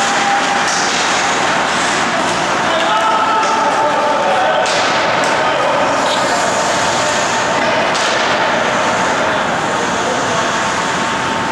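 Ice skates scrape and carve across a rink.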